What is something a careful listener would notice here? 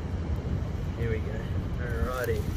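A man speaks briefly and quietly.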